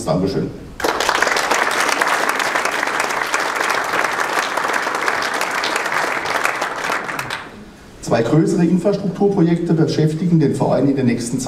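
A man speaks calmly into a microphone, heard through loudspeakers in a large room.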